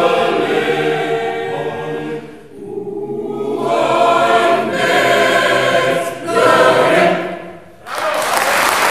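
A mixed choir sings together in a large echoing hall.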